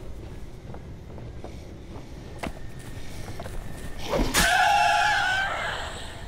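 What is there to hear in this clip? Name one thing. Footsteps thump on wooden stairs.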